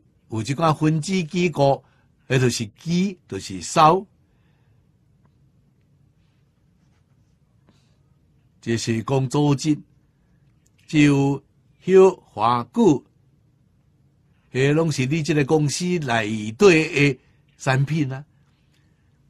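An elderly man speaks calmly into a close microphone, in short phrases with pauses.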